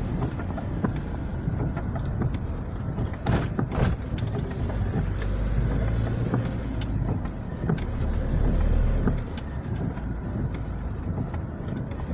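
Tyres hiss on wet asphalt, heard from inside a car.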